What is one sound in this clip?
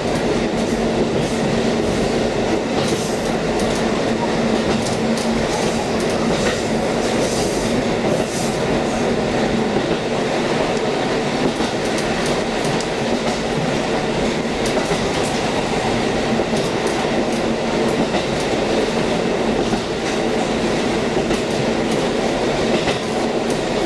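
A train engine rumbles steadily from inside a moving carriage.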